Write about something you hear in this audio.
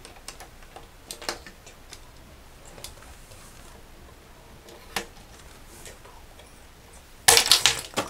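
Plastic toy parts click and clatter on a table.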